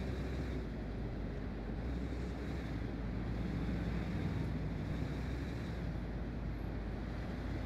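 A truck engine rumbles steadily as it drives along a road.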